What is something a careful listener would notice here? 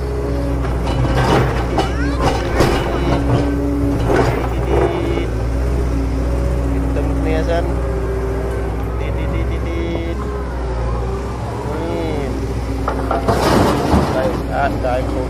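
Plastic toy trucks clatter and scrape over sand.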